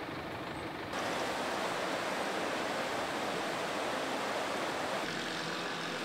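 Floodwater rushes and churns along a channel.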